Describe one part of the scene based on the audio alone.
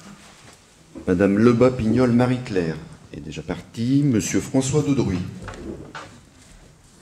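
A man speaks calmly over a microphone.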